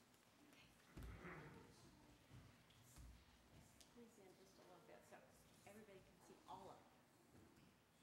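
Children murmur quietly.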